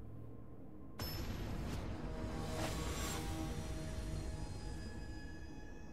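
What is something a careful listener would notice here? Game music swells in with a bright, ringing intro.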